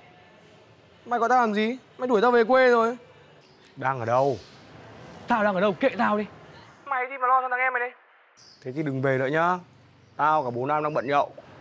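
Another young man talks tensely into a phone, close by.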